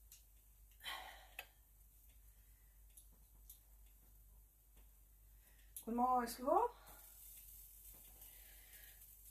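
Water drips and splashes as wet yarn is wrung out.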